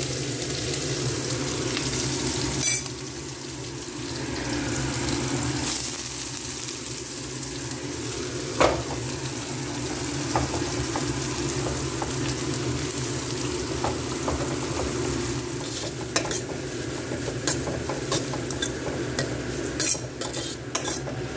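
Oil sizzles steadily in a hot pan.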